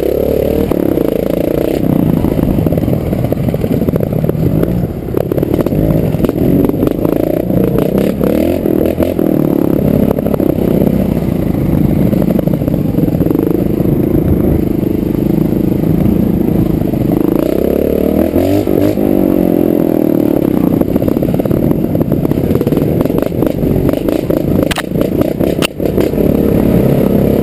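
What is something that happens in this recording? A dirt bike engine drones loudly up close, revving up and down.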